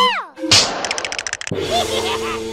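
Magical sparkles shimmer and tinkle.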